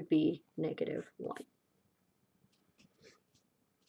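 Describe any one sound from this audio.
A marker squeaks briefly on paper.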